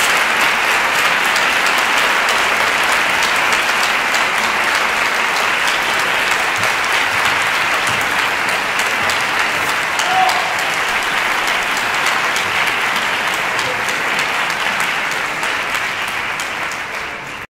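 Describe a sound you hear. A large audience applauds loudly and steadily in a big hall, fading toward the end.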